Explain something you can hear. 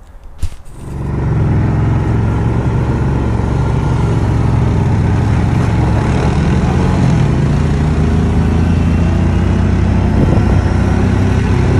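A snowmobile engine rumbles steadily nearby.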